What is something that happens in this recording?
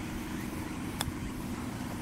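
A golf club clicks sharply against a ball.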